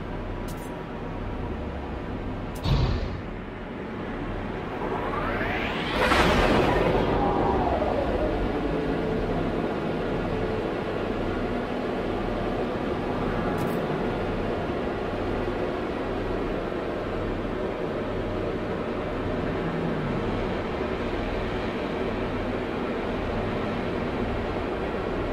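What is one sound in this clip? A spaceship engine hums steadily and loudly.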